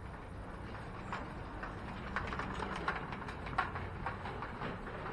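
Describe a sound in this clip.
A bicycle rattles over cobblestones as it passes close by.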